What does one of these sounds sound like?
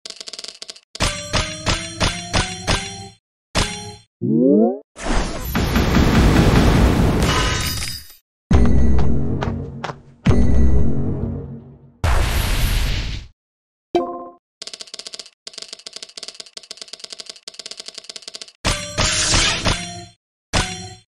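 Bright chimes ring in a quick rising series.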